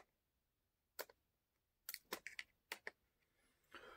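Small plastic parts click and rattle.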